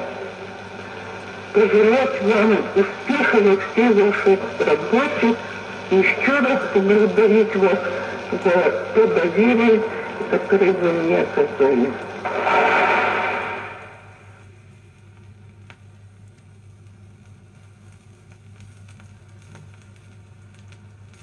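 A needle crackles and hisses softly on a spinning record.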